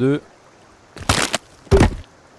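A wooden club thuds against a tree trunk.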